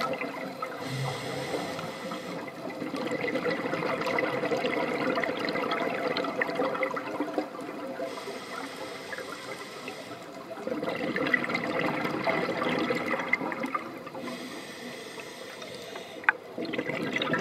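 A diver breathes in through a regulator with a hiss.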